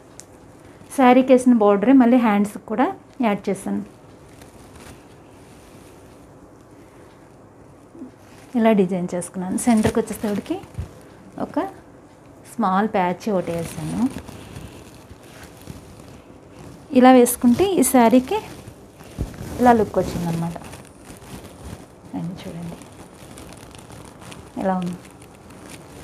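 A woman speaks close by, calmly, in short bursts with pauses.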